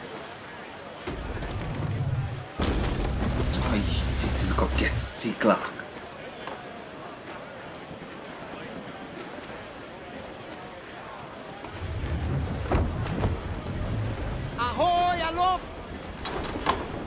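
Waves crash against a ship's hull in a rough sea.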